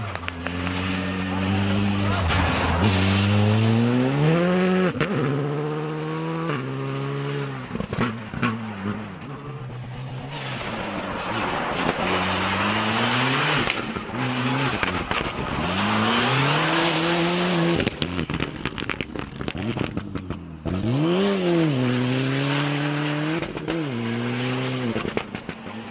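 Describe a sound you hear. A rally car engine revs hard, rising and dropping in pitch as it shifts gears.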